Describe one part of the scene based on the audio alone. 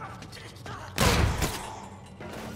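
A gun fires a short burst.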